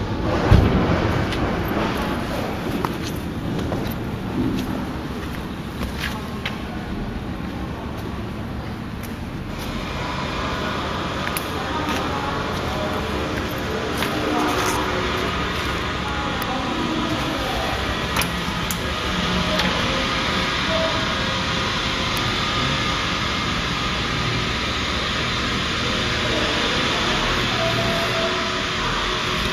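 A fan whirs inside a metal housing.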